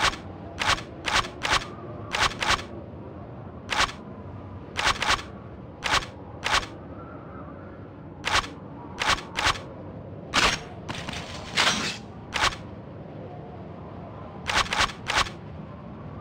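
Short sharp clicks tick again and again, in quick bursts.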